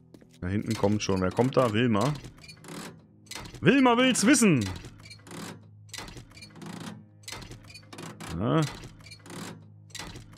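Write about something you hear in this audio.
A metal wrench clangs repeatedly against a car body.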